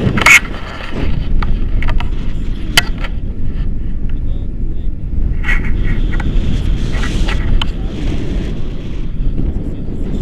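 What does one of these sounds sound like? A man talks with animation, close by, over the wind.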